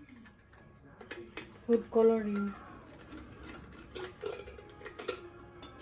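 Lids twist and scrape on glass jars.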